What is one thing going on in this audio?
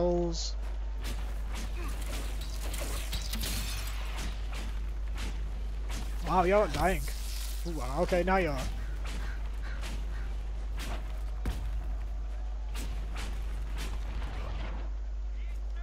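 Weapons clang and spells burst in a fight.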